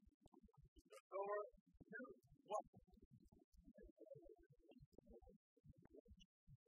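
Sports shoes squeak on a hard court floor.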